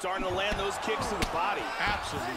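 A kick lands on a body with a dull thud.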